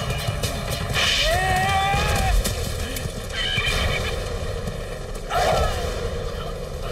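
A horse neighs loudly.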